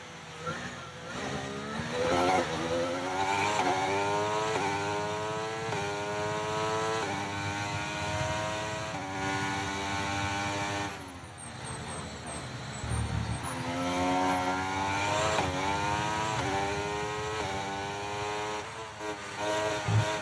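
A racing car engine screams as it revs up.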